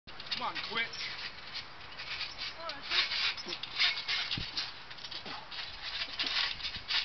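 A trampoline mat thumps as teenage boys bounce on it.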